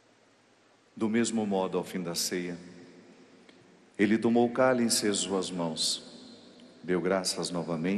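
A man chants through a microphone, echoing in a large hall.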